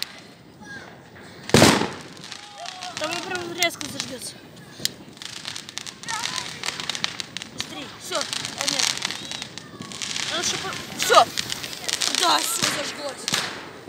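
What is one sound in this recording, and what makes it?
A firework fuse fizzes and sputters up close.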